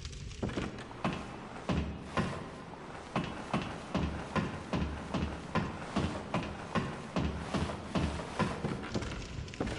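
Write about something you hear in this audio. Boots clunk rhythmically on wooden ladder rungs while climbing.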